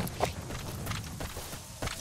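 Footsteps run over dry grass.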